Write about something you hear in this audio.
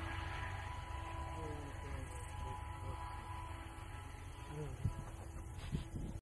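Traffic hums steadily on a distant road.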